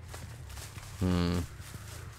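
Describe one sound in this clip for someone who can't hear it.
A man speaks briefly and loudly into a close microphone.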